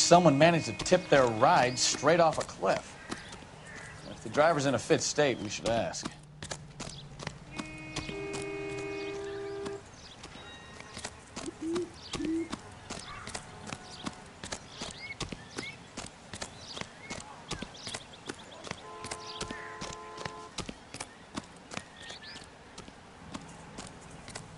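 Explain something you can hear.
Quick footsteps run over dirt and gravel.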